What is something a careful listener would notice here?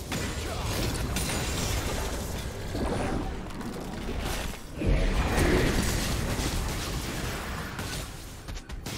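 Magic blasts whoosh and boom in a video game battle.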